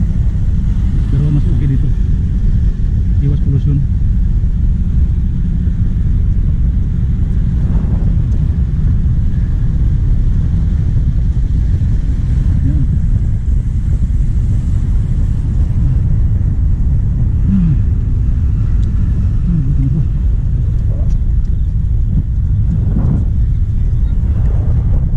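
Wind rumbles steadily and loudly across the microphone outdoors.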